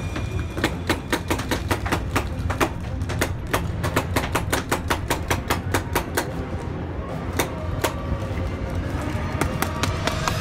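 A paintball marker fires shots.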